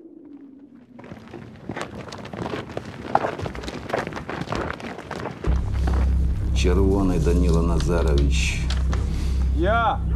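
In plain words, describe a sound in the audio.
A crowd of men shuffles and trudges over the ground.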